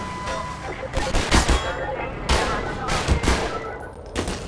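Metal crashes and bangs loudly several times.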